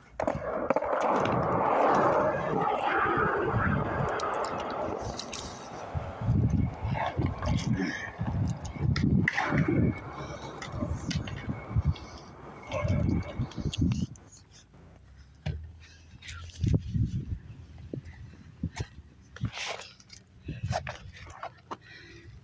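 Skateboard wheels clack over cracks in the pavement.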